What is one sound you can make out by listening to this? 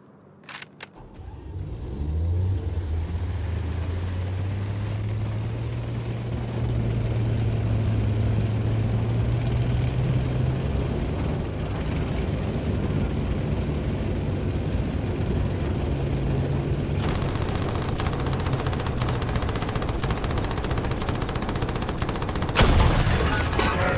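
A tank engine rumbles and roars close by.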